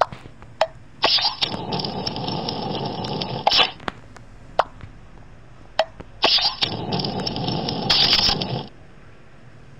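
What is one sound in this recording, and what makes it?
A fire crackles and whooshes in a burst.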